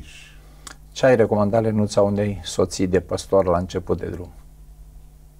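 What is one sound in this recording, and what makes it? An older man speaks calmly into a close microphone.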